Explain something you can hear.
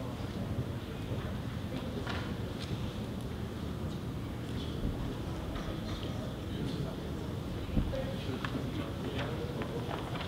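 Paper rustles as sheets are handled.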